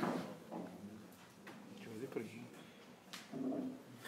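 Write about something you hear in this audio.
Billiard balls click together on a table.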